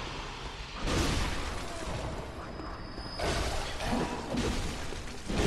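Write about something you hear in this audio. A sword swishes and clangs in a fight.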